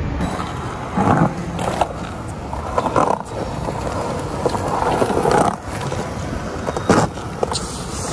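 A skateboard clacks against the ground.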